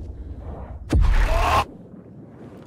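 A door bangs open suddenly.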